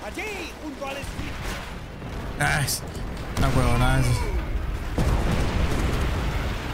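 Gunfire and explosions rumble.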